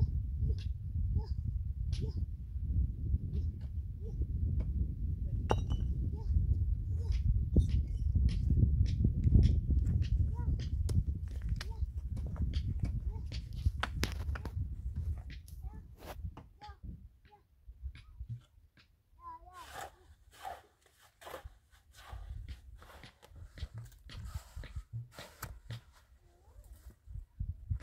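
A trowel taps and scrapes on concrete blocks.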